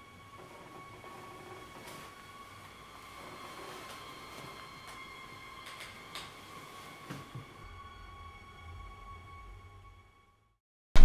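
Bedding rustles softly.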